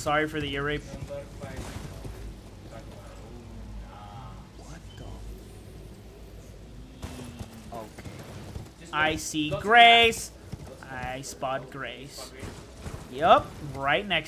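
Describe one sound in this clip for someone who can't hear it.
A horse's hooves clop on stone.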